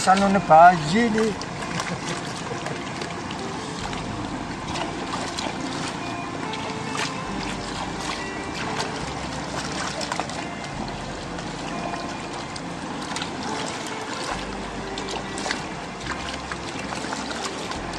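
Water sloshes and splashes steadily as a pan is swirled in a shallow river.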